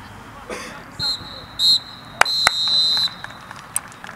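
A referee's whistle blows several short, shrill blasts.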